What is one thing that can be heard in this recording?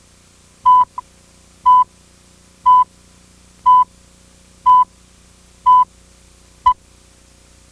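A short electronic beep sounds once every second.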